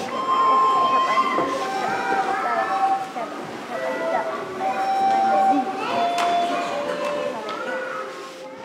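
Children sing together nearby.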